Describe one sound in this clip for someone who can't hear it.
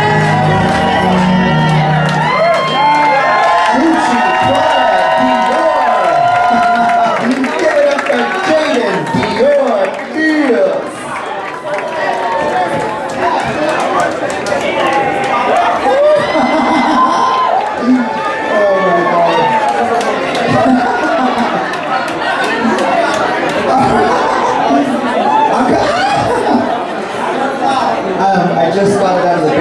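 A crowd cheers and shouts loudly in a noisy room.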